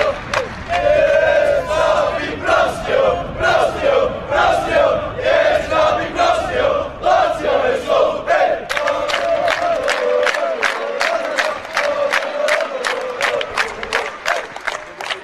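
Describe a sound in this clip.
A crowd of young men chants loudly in unison outdoors.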